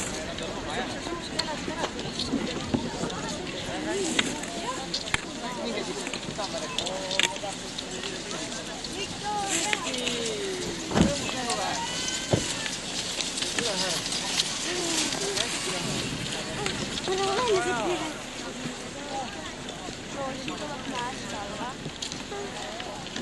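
A crowd of people cheer and call out outdoors.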